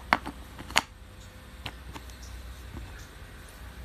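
Wooden puzzle pieces click and knock as a child fits them into a board.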